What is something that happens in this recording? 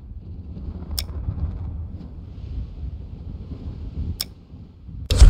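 A menu clicks.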